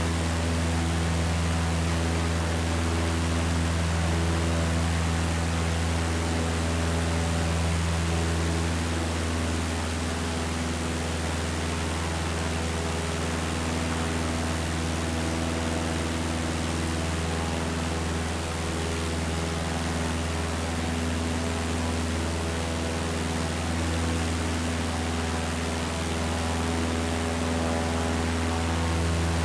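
A small propeller plane's engine drones steadily, with a low hum.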